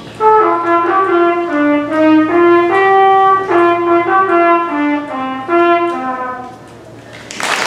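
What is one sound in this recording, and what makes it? A large concert band plays a bright melody in an echoing hall, then stops.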